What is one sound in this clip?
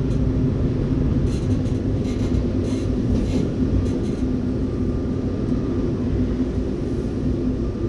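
Another train rushes past close alongside.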